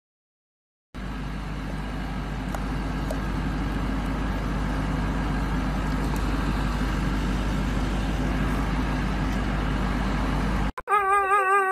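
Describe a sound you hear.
A vehicle engine idles with a steady low hum.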